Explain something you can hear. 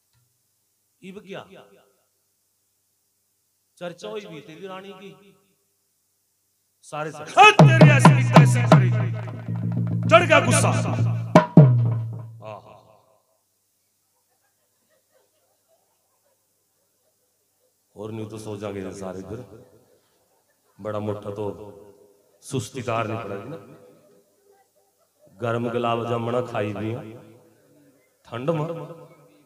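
A man sings and speaks with feeling into a microphone, in bursts with pauses.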